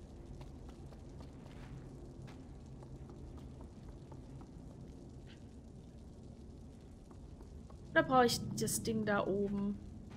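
Small footsteps patter on wooden floorboards.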